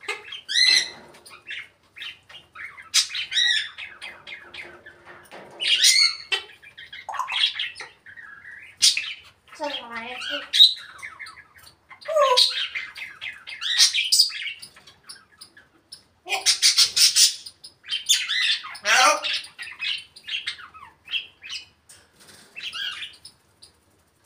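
A parrot squawks, whistles and chatters in bursts close by.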